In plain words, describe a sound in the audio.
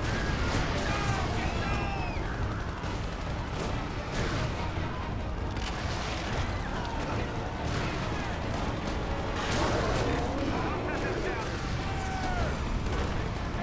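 Heavy blows and impacts thud again and again.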